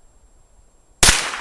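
A rifle fires a single loud shot outdoors.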